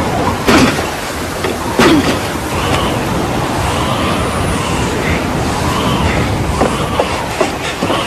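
Waves wash onto a shore.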